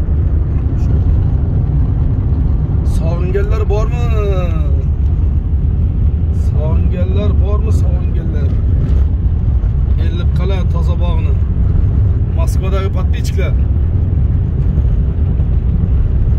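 A car engine hums with steady road rumble from inside the car.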